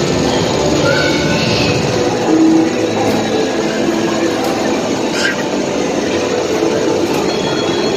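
An arcade racing game plays loud music and engine sounds.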